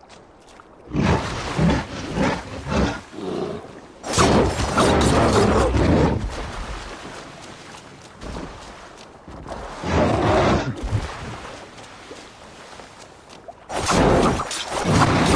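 A bear roars and growls loudly.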